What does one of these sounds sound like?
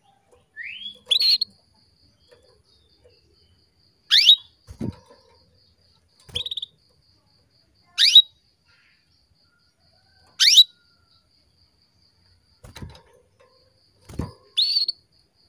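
A bird's wings flutter as it hops about a cage.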